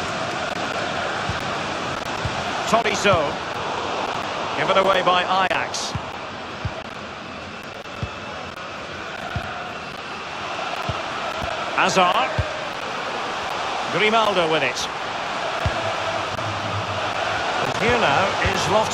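A stadium crowd roars steadily throughout.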